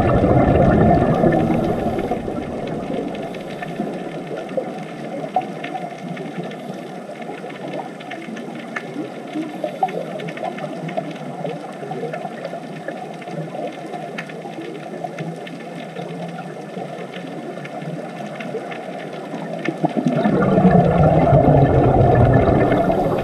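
Air bubbles from a diver's breathing gurgle and rumble underwater.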